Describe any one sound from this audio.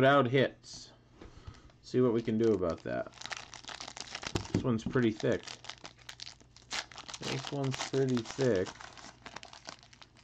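Plastic wrappers crinkle as they are handled.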